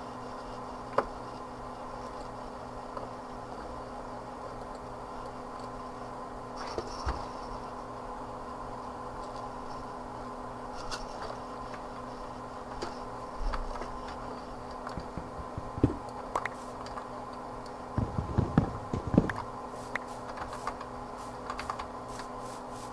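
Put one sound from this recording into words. Short game clicks and thuds sound as blocks are placed and broken.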